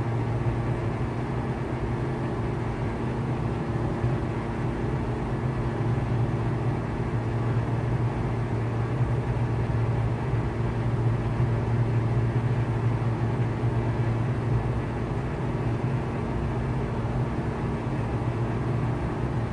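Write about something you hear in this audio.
A small propeller plane's engine drones steadily from inside the cockpit.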